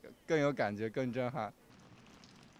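A young man speaks cheerfully close to a microphone.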